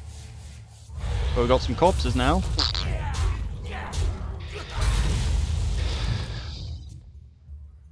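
Magical game sound effects whoosh and burst loudly.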